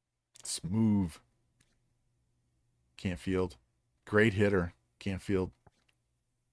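A middle-aged man speaks into a microphone with animation, in short bursts.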